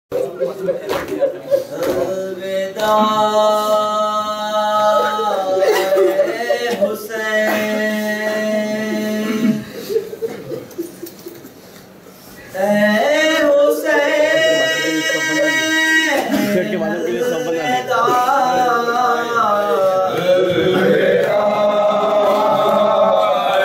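A group of men chant along in unison.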